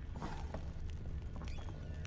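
A torch flame crackles softly.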